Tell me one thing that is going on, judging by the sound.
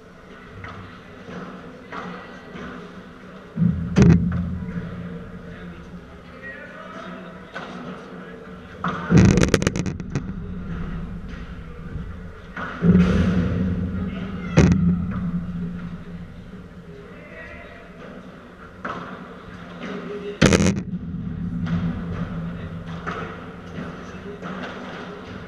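Shoes squeak and scuff on the court.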